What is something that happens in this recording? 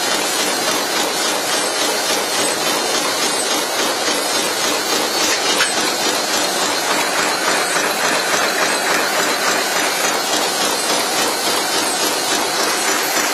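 Machine parts tick and clack in a fast, even rhythm.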